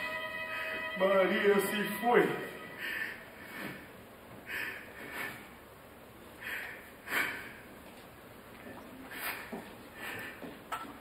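A man speaks in short, raised phrases in a large hall.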